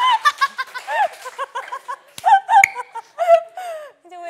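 A young woman laughs loudly and brightly.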